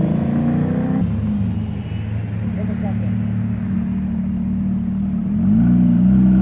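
A sports car engine idles with a deep rumble nearby.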